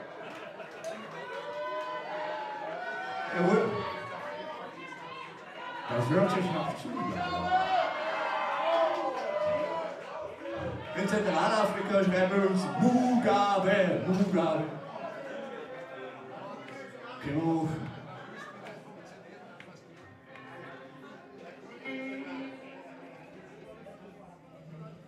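A rock band plays loudly through amplifiers in a hall.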